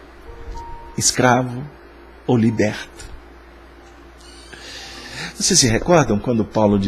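A middle-aged man speaks calmly and close into a microphone, in short bursts with pauses.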